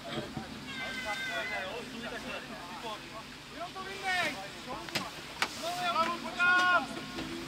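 Men shout to each other across an open field.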